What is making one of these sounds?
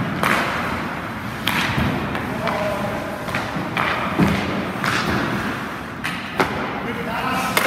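Goalie skates scrape across ice in short pushes.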